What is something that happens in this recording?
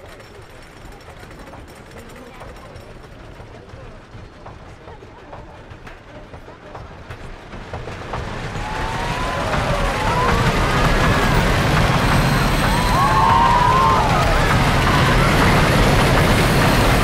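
A roller coaster car clatters along a wooden track, growing louder as it speeds up.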